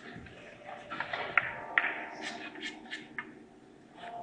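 Billiard balls click sharply against each other and the cushions.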